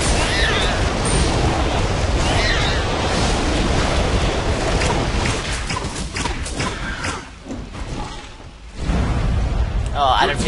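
Blows and impacts clash in a fight.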